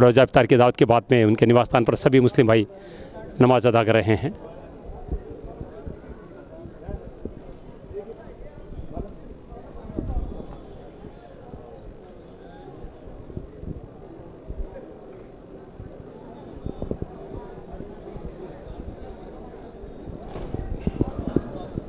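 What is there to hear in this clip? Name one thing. A crowd of people shuffles and rustles quietly.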